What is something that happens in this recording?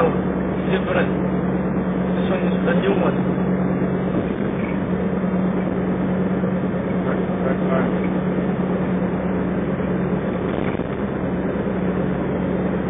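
Tyres roar on the road at speed.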